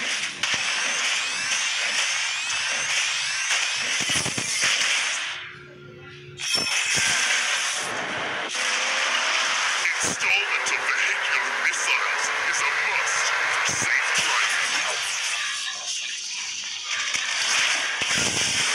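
Game sound effects of spells and hits crackle and whoosh.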